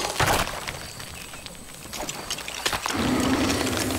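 Loose bricks scatter and rattle across the ground.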